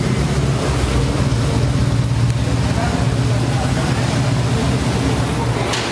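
Motorcycle engines idle with a low, steady rumble.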